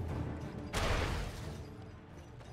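A magic blast whooshes and crackles.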